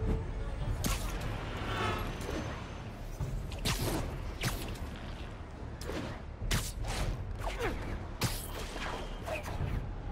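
Air whooshes past in quick bursts during fast swinging flight.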